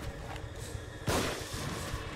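A revolver fires a single loud shot.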